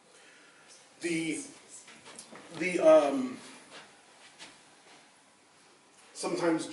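A middle-aged man speaks calmly.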